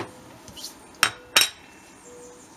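A ceramic saucer clinks onto a hard surface.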